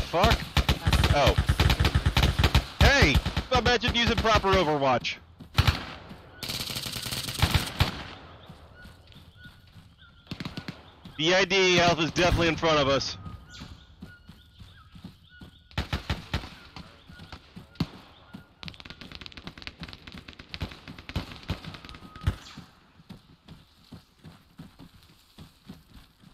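Footsteps run over dry ground.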